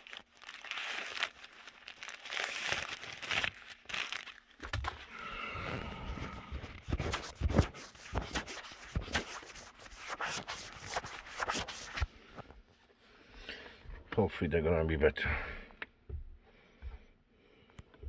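Fabric rustles and brushes close by.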